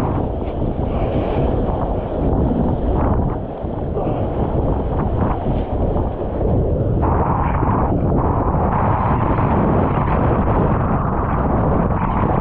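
Choppy water splashes and rushes close by.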